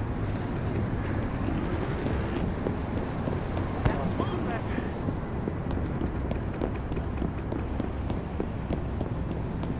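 Footsteps run on pavement.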